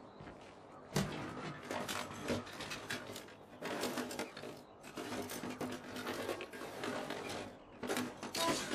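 Someone rummages through boxes and crates with rustling and knocking.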